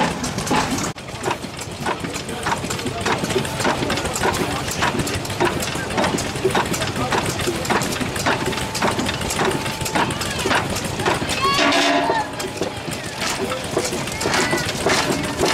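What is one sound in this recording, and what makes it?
An old stationary engine pops and thumps steadily.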